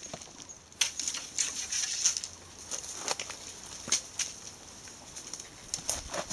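Branches and leaves rustle as a tree is shaken hard.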